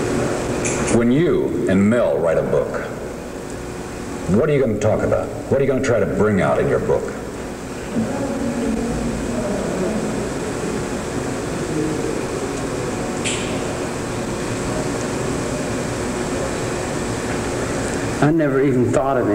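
A man speaks calmly, close by, in short bursts.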